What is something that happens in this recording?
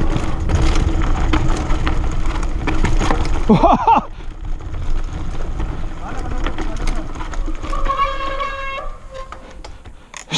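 Bicycle tyres crunch and rumble over a dirt trail.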